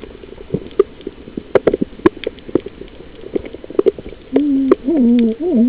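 Water splashes and bubbles, heard muffled underwater.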